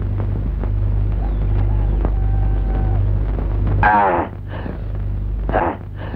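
A man gulps water from a clay pot.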